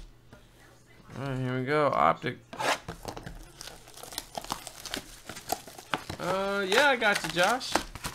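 Hands tear open a cardboard box.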